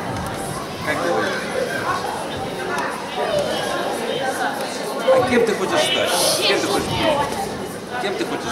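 A man asks questions into a microphone.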